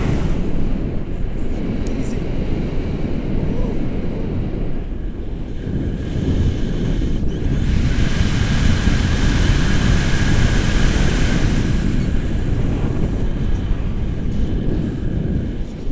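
Wind rushes and buffets the microphone during a paraglider flight.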